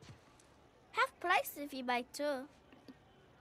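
A young girl speaks cheerfully.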